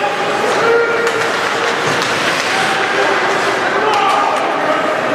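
A crowd cheers and shouts loudly in a large echoing arena.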